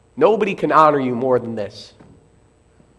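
A man speaks with emphasis through a microphone.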